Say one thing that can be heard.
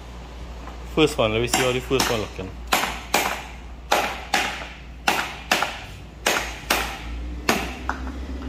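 A cleaver chops into a coconut with sharp, repeated knocks.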